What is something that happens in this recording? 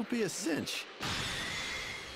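A loud burst of energy blasts in a game.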